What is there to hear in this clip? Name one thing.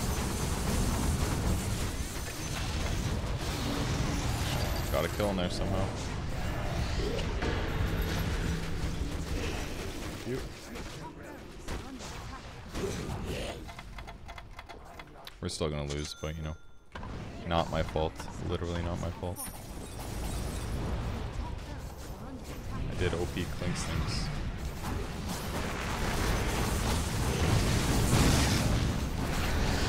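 Game spells and clashes crackle and boom.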